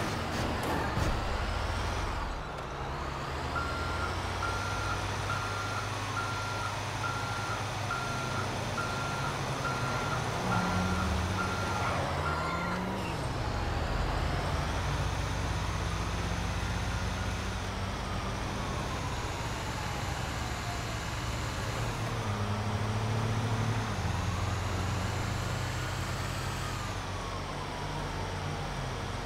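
A heavy truck engine rumbles steadily as the truck drives.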